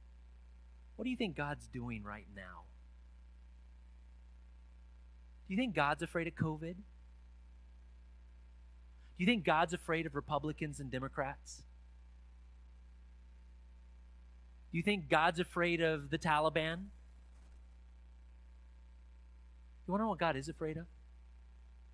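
A man speaks calmly through a microphone in short phrases with pauses.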